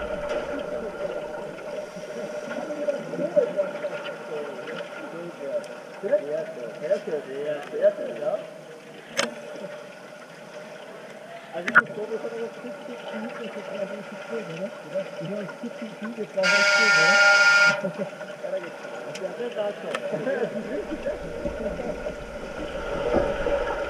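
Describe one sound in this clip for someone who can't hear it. Bubbles gurgle and burble loudly underwater.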